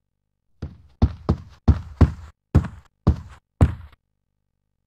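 Heavy armoured footsteps thud on wooden floorboards.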